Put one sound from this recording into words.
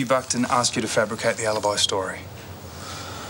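A man speaks quietly and intently at close range.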